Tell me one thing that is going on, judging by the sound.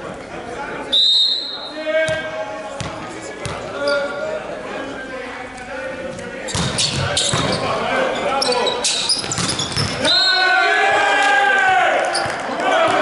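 Sneakers squeak on a wooden court floor.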